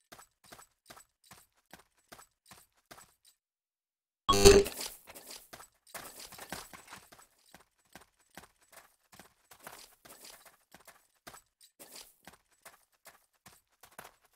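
Footsteps tap at a steady, quick pace.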